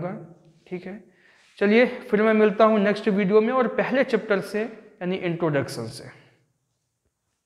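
A man speaks clearly and calmly to the listener, close up.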